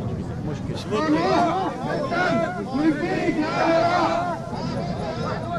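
A large crowd of men chants and shouts outdoors.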